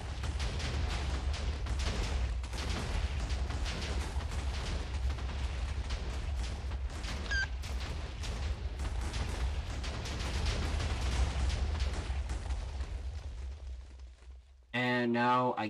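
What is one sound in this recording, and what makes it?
Explosions boom and rumble one after another.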